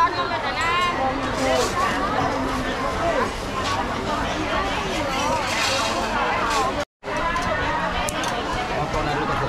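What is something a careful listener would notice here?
Many voices chatter all around.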